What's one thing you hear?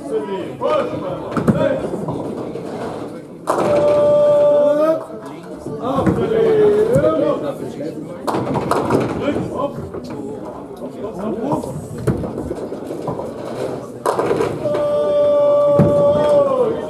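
Men's voices call out and cheer in an echoing hall.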